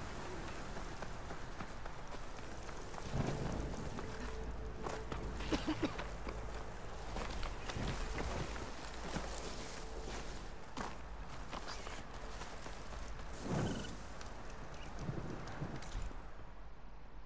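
Footsteps crunch on rough ground as a figure runs.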